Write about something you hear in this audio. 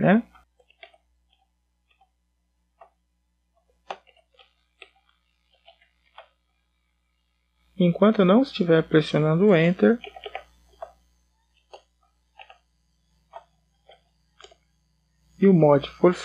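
Keys tap softly on a computer keyboard.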